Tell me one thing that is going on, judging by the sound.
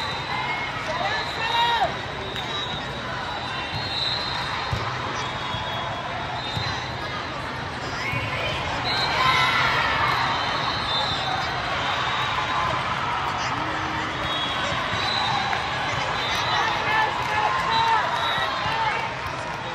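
Young women call out and cheer.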